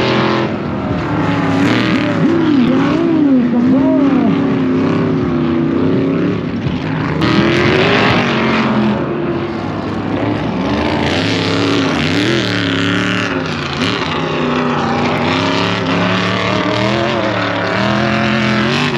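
Dirt bike engines rev and whine loudly, rising and falling in pitch.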